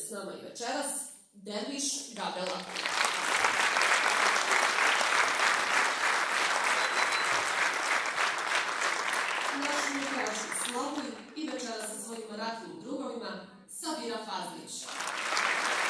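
A woman speaks through a microphone over loudspeakers in a large hall.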